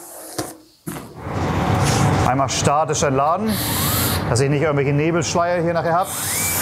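A spray gun hisses with a steady rush of air.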